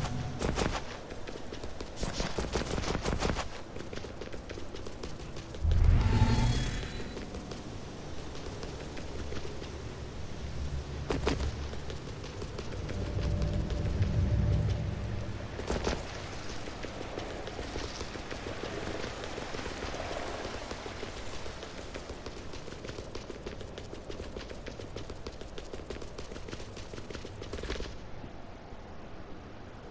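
Footsteps patter quickly as a character runs.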